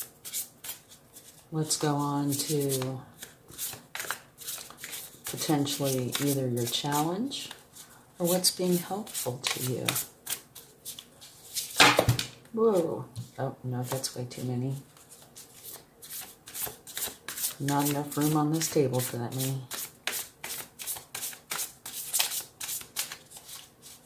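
Playing cards shuffle and flick against each other in quick, light taps.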